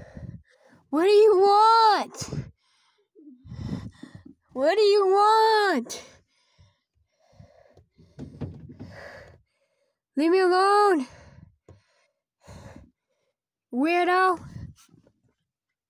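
A young woman screams loudly close by.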